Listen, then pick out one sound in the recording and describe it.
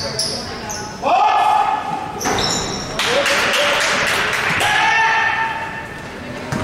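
Young men shout across a large echoing hall.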